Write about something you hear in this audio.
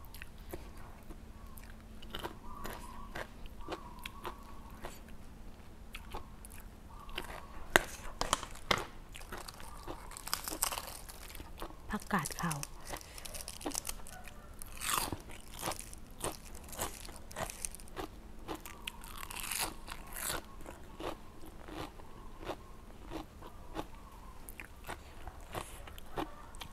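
A woman chews and slurps food close to a microphone.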